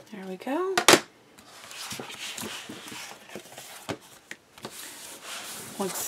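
Stiff paper cards rustle and slide against each other.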